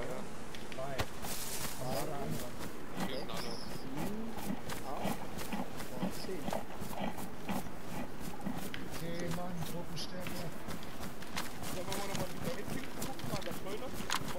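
Footsteps swish quickly through tall grass.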